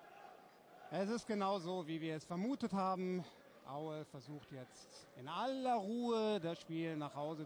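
A crowd of fans chants loudly in unison.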